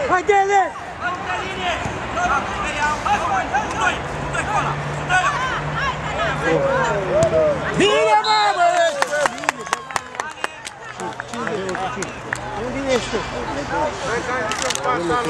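Children shout and call out excitedly across an outdoor pitch.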